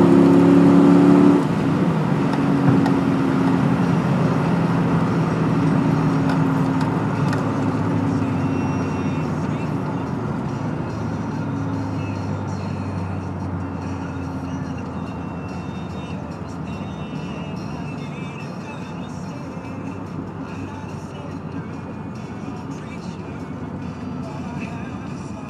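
A car engine roars at high revs, then settles into a steady, fading drone.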